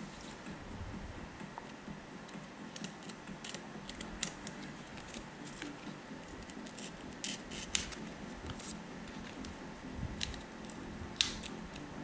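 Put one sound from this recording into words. A knife blade clicks as it is opened.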